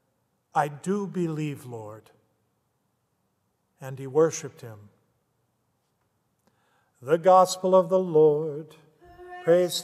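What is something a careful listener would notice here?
An older man speaks calmly through a microphone in an echoing hall.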